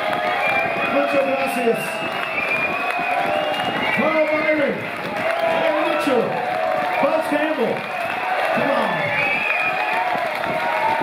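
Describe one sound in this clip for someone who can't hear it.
A man speaks loudly through a microphone, echoing in a large hall.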